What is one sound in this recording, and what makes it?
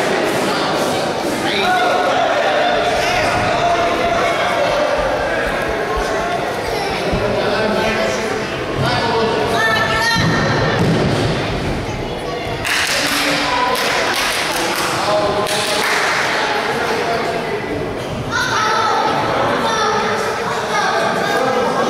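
Spectators shout and call out nearby in an echoing hall.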